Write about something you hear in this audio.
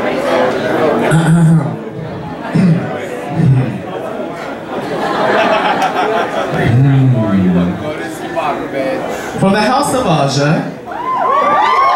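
A man speaks into a microphone, heard over loudspeakers.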